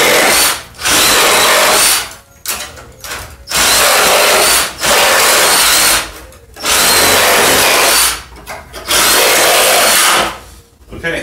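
A power drill whirs loudly in short bursts.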